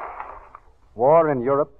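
A man reads out lines into a microphone, heard through an old, narrow-sounding broadcast.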